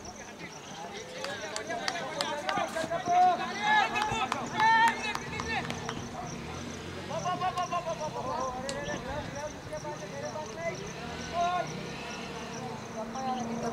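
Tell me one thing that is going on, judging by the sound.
Young men shout and call out loudly across an open field.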